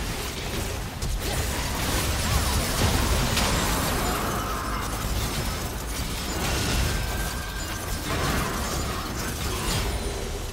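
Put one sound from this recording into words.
Spell effects whoosh and crackle in a game battle.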